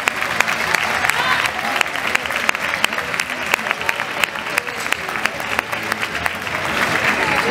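A crowd claps along in rhythm.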